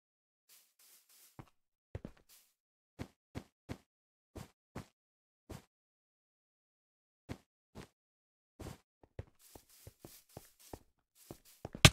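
Footsteps tap on blocks.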